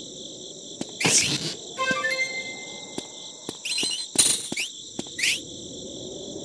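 A blade swishes through the air in quick swings.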